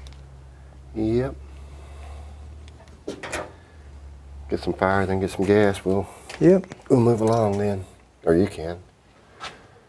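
An older man answers in a relaxed voice.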